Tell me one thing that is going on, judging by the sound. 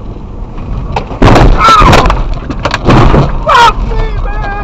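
A car crashes with several loud bangs.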